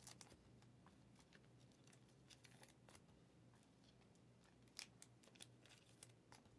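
Hands rustle and tap close by.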